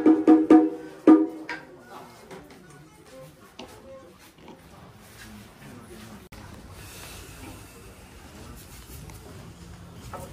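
Bare feet shuffle and stamp on a floor.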